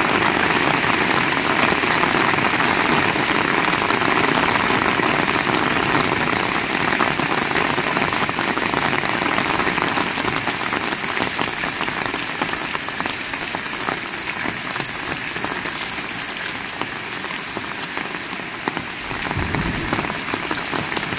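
Heavy rain pours steadily outdoors, pattering on wet ground and roofs.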